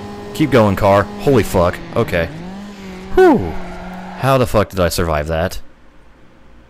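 A car engine revs loudly and shifts gears at speed.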